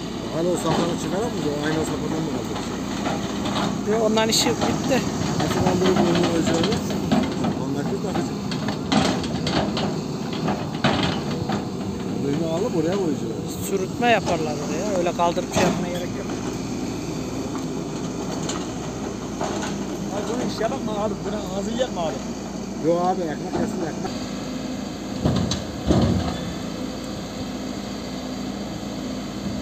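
Heavy diesel engines rumble steadily close by.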